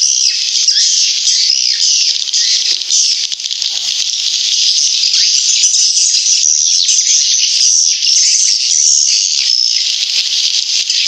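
Swiftlets chirp and twitter rapidly and without pause.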